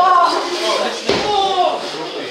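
A boxer thuds onto the ring floor.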